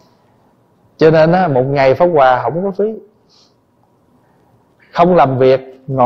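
A man speaks calmly and expressively into a microphone.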